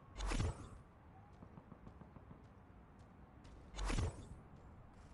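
Gunfire bursts loudly in a video game.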